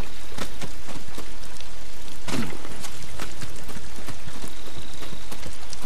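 Feet and hands knock on a wooden ladder during a climb.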